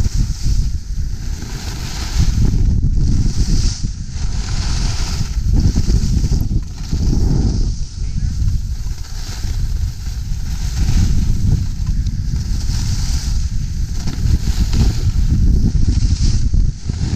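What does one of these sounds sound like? Wind rushes and buffets loudly past the microphone.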